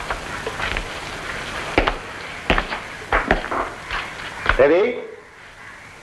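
A man speaks in a raised voice.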